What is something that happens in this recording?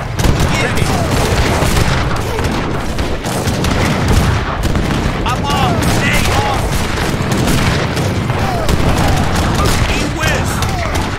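Muskets fire in rapid, crackling volleys.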